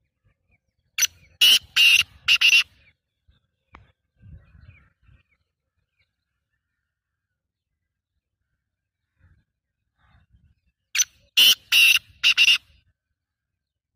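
A caged bird calls loudly in short bursts of harsh chirps.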